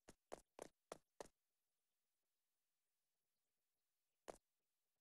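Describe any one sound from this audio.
Footsteps thud quickly on a hard floor, then stop, with one more step later.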